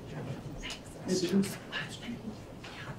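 A young man speaks softly into a microphone.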